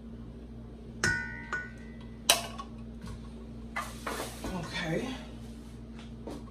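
A spatula clanks against a metal bowl.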